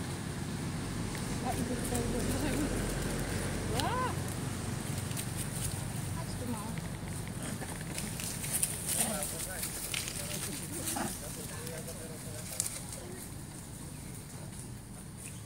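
Leaves and branches rustle as monkeys climb in a tree.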